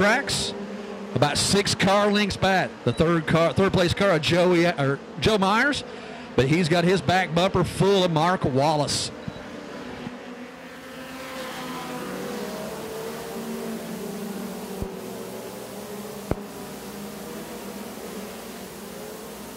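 Race car engines roar around a dirt track.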